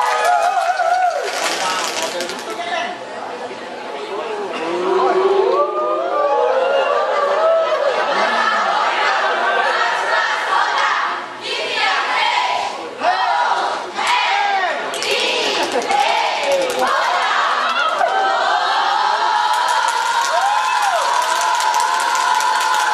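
A choir of young women sings together in a large echoing hall.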